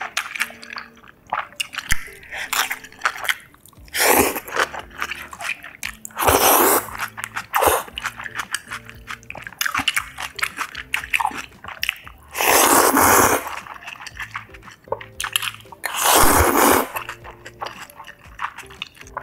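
A young woman chews food wetly, close up.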